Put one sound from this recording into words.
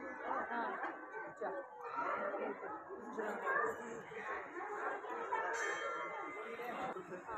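A crowd of men and women chatters indoors.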